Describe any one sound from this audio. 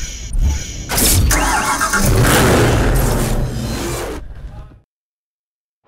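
A sports car engine roars and revs loudly.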